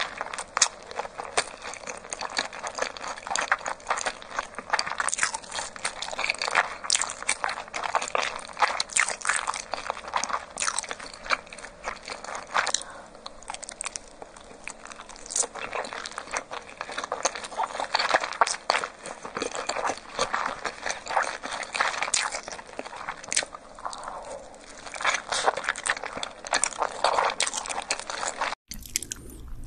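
A young woman chews soft food close to a microphone, with wet, smacking mouth sounds.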